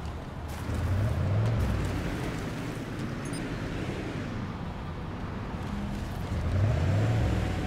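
A vehicle engine rumbles and revs while driving over rough ground.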